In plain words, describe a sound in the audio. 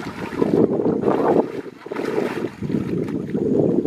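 Water splashes as a second person runs through it.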